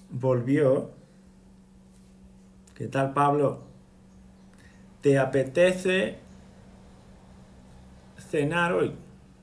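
A man speaks close up in short, lively bursts.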